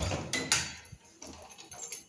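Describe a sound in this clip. A door handle clicks as it is pressed down.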